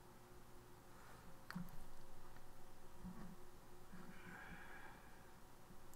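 A man speaks calmly and quietly into a microphone.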